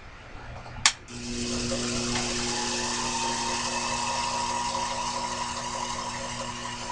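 A small lathe motor hums steadily.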